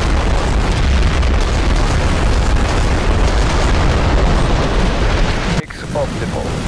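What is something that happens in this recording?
Bombs burst in a heavy, rumbling barrage.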